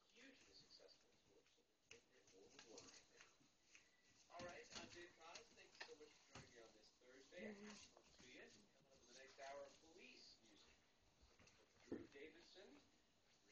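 A puppy chews and tugs at a toy.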